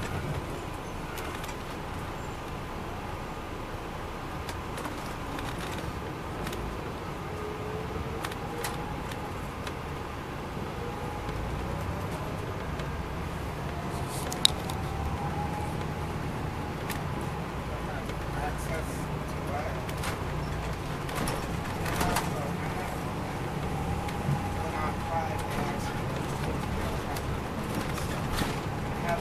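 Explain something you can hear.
A diesel coach bus engine drones from inside the cabin as the bus drives along a street.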